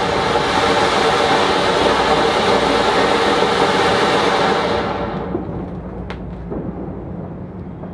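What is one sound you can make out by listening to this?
A ground fountain firework hisses and crackles, then dies down.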